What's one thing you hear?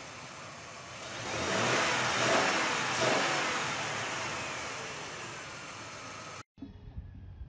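An off-road truck engine roars loudly as it climbs through mud.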